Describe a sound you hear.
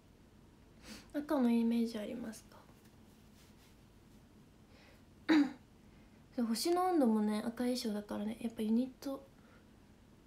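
A young woman speaks softly and close to the microphone, in short bursts.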